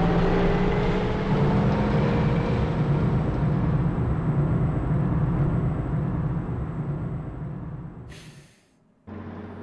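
A heavy lift rumbles and hums steadily, then fades away.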